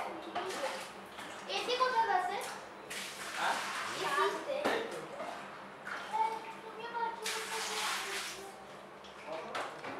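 Water splashes and sloshes in a bucket.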